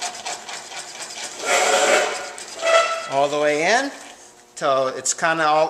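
A metal lathe whirs as it turns.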